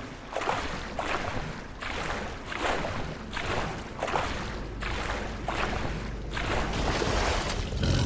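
Water splashes in rhythmic strokes as someone swims.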